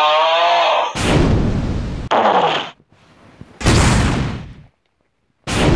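Loud blasts of gunfire go off in bursts.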